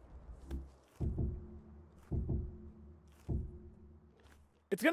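Wooden blocks land with dull thuds.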